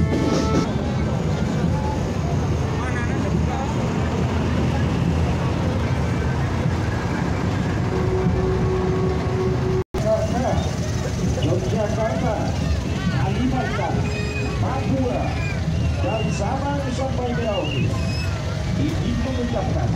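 A crowd of women and men chatters and calls out nearby, outdoors.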